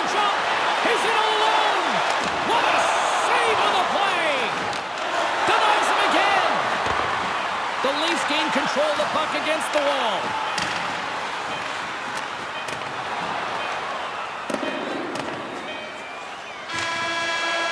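A crowd roars and cheers in a large echoing arena.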